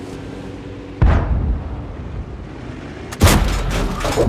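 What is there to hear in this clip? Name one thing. A tank cannon fires with a loud, sharp boom.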